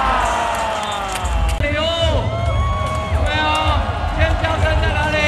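A large crowd cheers and chatters.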